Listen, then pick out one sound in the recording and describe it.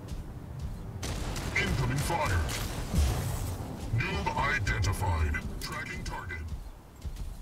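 Guns fire rapid bursts with loud blasts.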